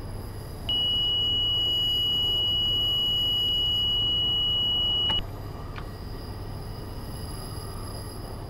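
A train engine hums steadily.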